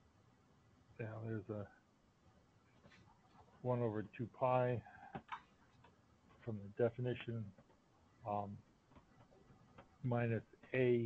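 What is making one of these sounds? A man speaks calmly in short phrases, heard through an online call.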